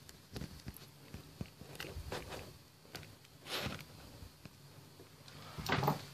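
Hands bump and rub against a phone close by.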